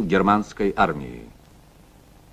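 A man speaks loudly, briefly, close by.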